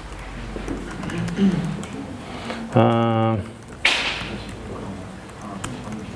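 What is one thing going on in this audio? Keys on a laptop keyboard click as someone types.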